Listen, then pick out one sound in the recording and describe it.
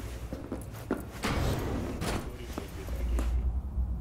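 A metal door slides open.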